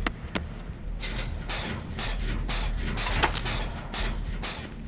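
A machine clanks and rattles while being repaired.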